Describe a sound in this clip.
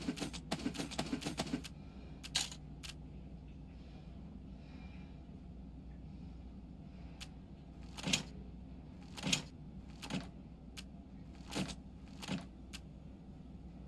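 Short game interface clicks sound as menu items are selected.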